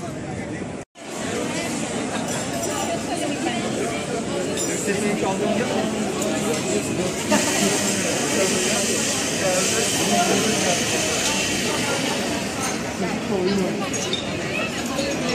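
A crowd of people chatters and walks along a busy street.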